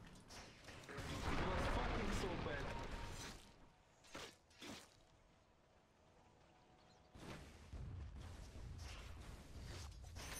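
Game spells crackle and hit during a fight.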